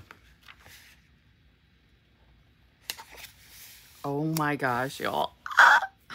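Hands smooth and press a sticker onto paper.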